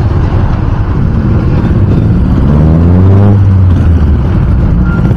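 A sedan accelerates past, its engine rising in pitch.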